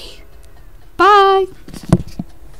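A young woman calls out loudly, close to the microphone.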